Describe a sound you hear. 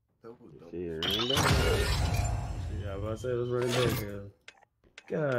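A burst of game sound effects plays as a token is earned.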